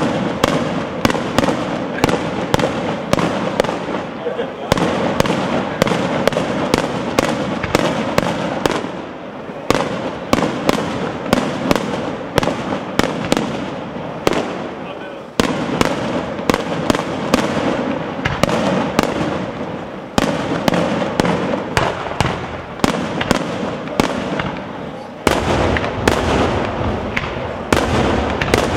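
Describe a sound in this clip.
Fireworks bang and crackle rapidly overhead, outdoors.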